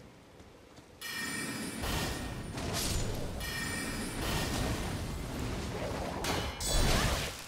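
A magic spell shimmers and hums.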